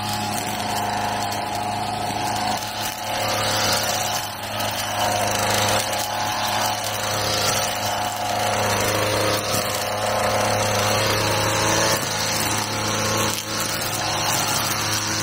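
A petrol string trimmer engine drones steadily close by.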